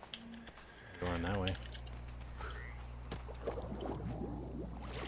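Water swirls and splashes around a swimmer.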